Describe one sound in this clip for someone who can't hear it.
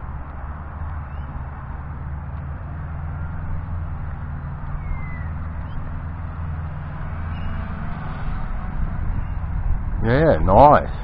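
A small drone's motors whir and buzz steadily.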